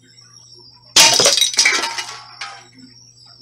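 A metal can tips over and clatters onto a hard surface.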